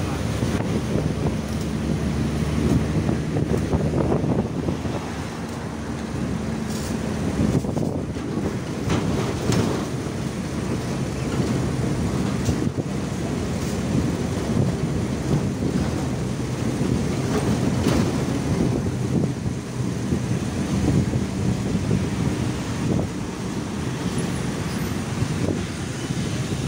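A vehicle engine hums steadily from inside while driving.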